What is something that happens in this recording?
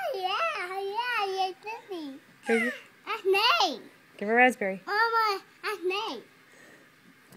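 A young child laughs loudly up close.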